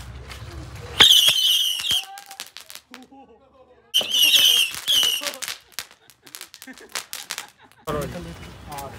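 Firecrackers crackle and pop in rapid bursts.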